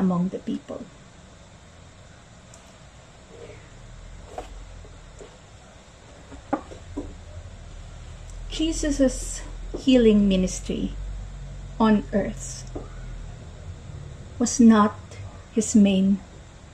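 A young woman speaks calmly and warmly into a nearby microphone.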